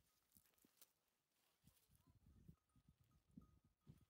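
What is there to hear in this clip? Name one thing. A knife cuts into a melon.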